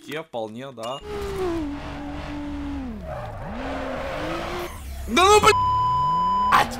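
A car engine revs up and down.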